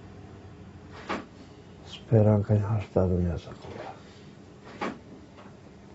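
A middle-aged man speaks quietly and slowly, close by.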